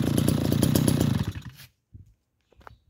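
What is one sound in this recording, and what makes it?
A small engine dies down and sputters to a stop.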